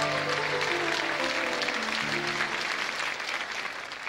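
A band plays a short closing musical phrase.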